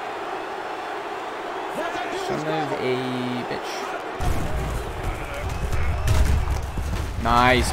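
A stadium crowd cheers steadily in the background.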